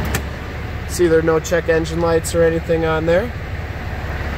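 A car's warning chime sounds in a quick run of repeated tones.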